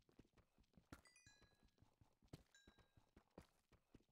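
A stone block cracks apart.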